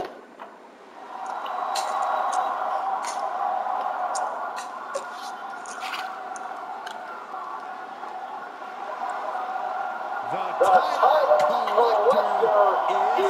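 A large arena crowd cheers and roars steadily.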